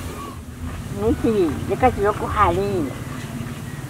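An elderly woman speaks with animation, close by.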